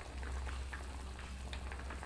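Liquid pours into a pot with a soft splash.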